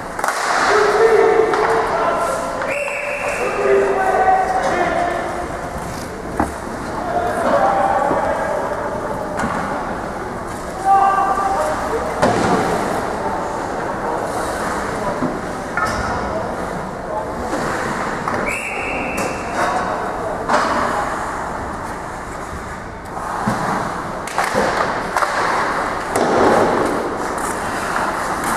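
A crowd of spectators murmurs and calls out in an echoing arena.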